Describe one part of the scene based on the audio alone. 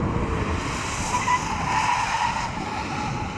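Tyres squeal as a car brakes hard.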